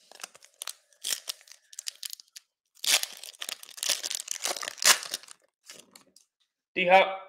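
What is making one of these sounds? Hands crinkle and tear open a foil wrapper.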